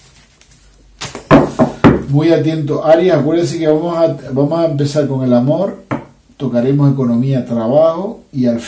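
Cards are laid down on a table with soft slaps.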